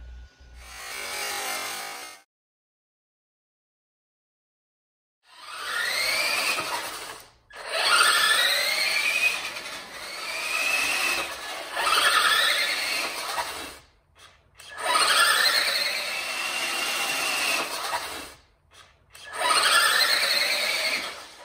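A toy truck's electric motor whines in bursts, rising and falling in pitch as it speeds back and forth.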